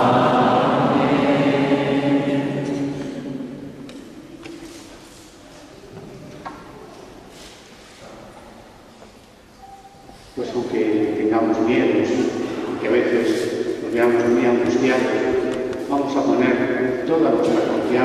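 A group of men sings together in an echoing hall.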